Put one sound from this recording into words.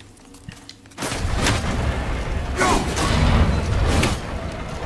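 An axe swings through the air with a loud whoosh.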